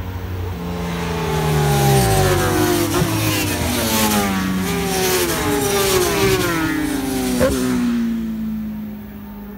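Several racing motorcycle engines scream past one after another at high speed, their pitch rising and falling.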